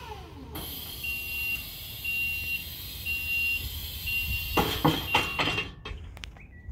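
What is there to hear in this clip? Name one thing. A lift alarm beeps in a quick repeating pattern.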